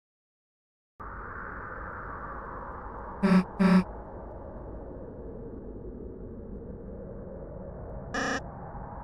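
Calm chiptune game music plays.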